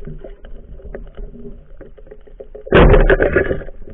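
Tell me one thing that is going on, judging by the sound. A metal spear scrapes and knocks against rock underwater.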